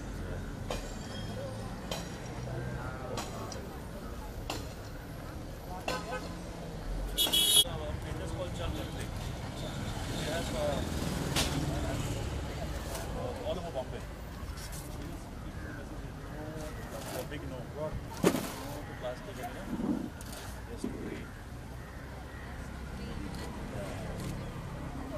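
A woman and a man talk casually nearby outdoors.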